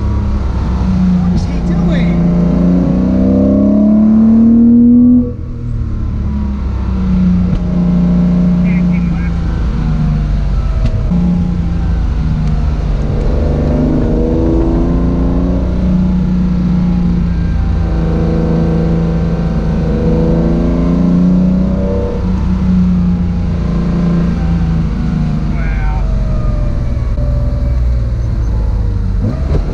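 A car engine revs hard and roars, rising and falling in pitch as the gears change.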